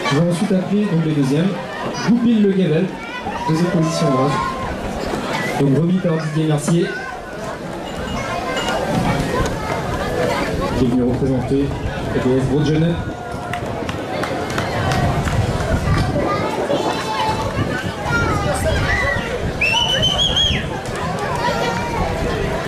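A crowd of adults and children chatters in the background.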